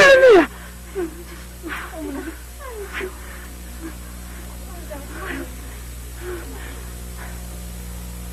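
A woman speaks softly and gently nearby.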